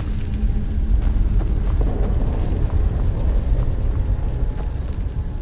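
Footsteps echo on a stone floor in a large echoing space.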